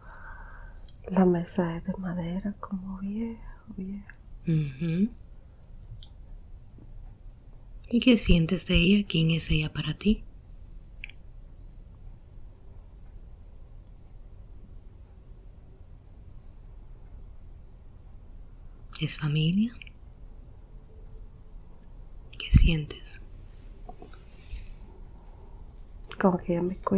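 A young woman moans and mumbles in her sleep close by.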